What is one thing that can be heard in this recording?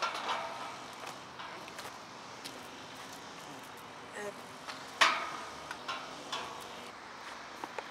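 A metal fence rattles and clanks.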